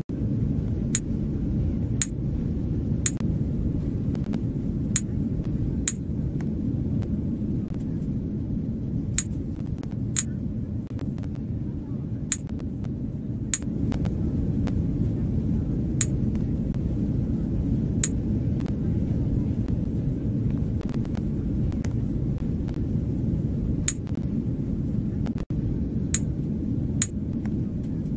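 Short sharp clicking pops sound now and then.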